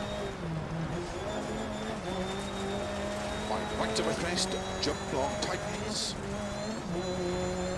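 A rally car engine revs hard and shifts through gears.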